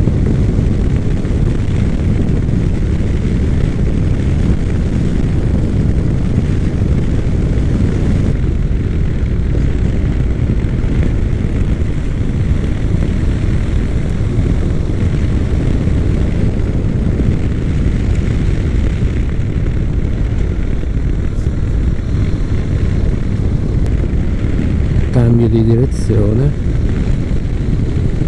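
Loud wind rushes over a microphone on a moving motorcycle.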